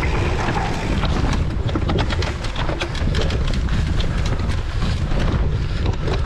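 A bicycle chain and frame clatter over bumps.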